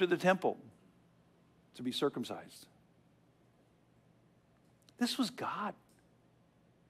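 An elderly man speaks calmly through a microphone in a room with a slight echo.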